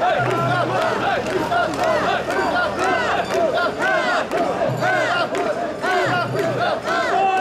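A large crowd of men chant loudly in rhythm outdoors.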